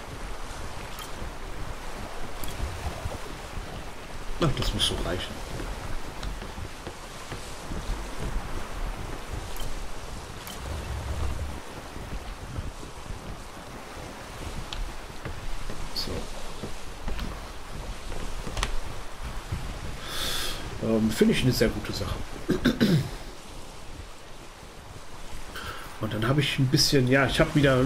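Rough sea waves rush and splash against a wooden ship's hull.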